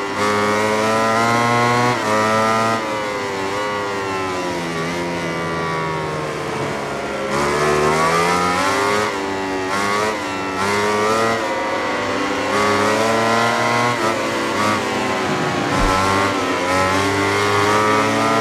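A motorcycle engine screams at high revs, rising and falling as it shifts gears.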